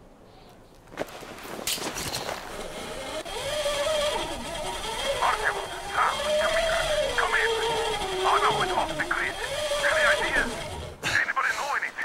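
A pulley whirs and hisses as it slides fast along a steel cable.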